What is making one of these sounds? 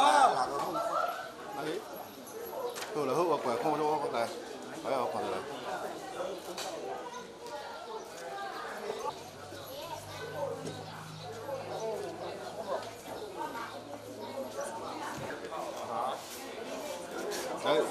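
Several men and women talk nearby at once, outdoors.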